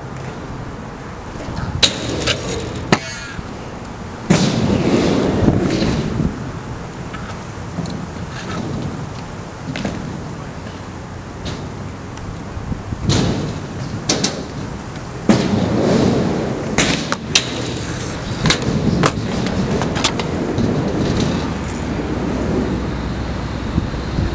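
Kick scooter wheels roll and rumble across concrete.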